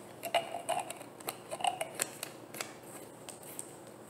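Fingers twist a plastic bottle cap.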